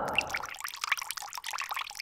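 Water drips and splashes onto a hard floor.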